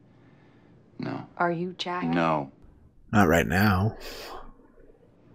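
A man speaks quietly.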